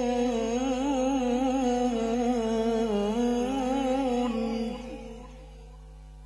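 A man chants in a wavering voice through a microphone and loudspeakers.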